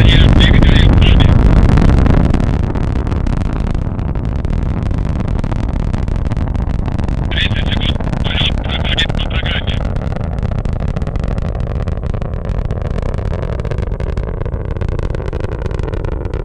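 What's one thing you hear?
A rocket engine roars loudly and slowly fades into the distance.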